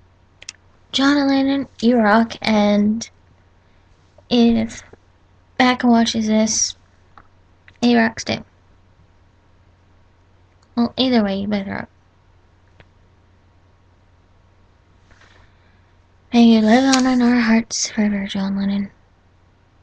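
A young woman speaks close to a microphone in short, calm bursts.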